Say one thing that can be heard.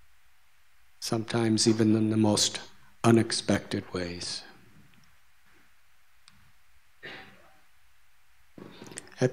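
A middle-aged man speaks calmly into a microphone, in pauses.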